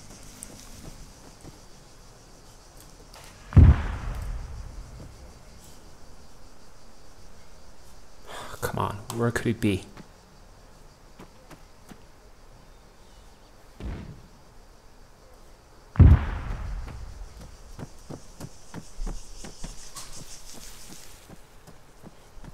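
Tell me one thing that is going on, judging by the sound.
Footsteps crunch steadily on gravel and dirt.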